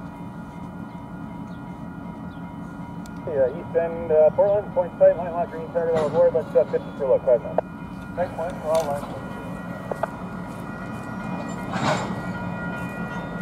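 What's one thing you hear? A freight train rolls slowly along the tracks with a low rumble.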